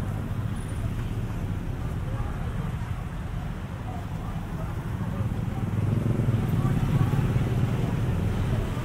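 A small truck's engine idles with a steady low rumble.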